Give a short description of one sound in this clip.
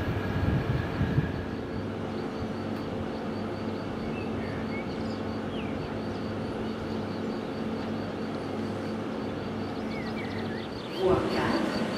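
An electric passenger train rolls away on the tracks and fades into the distance.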